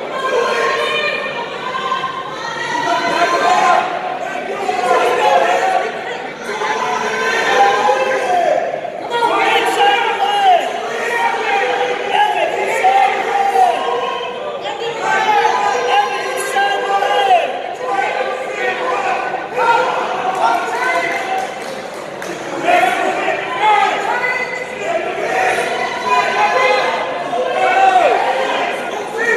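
A crowd of spectators shouts and cheers loudly in a large echoing hall.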